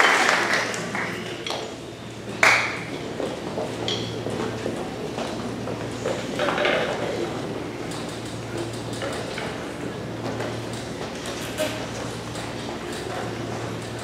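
Musicians shuffle and move about on a stage.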